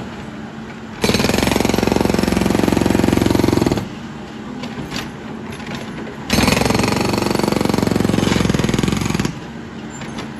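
A hydraulic breaker hammers rapidly on pavement in loud bursts.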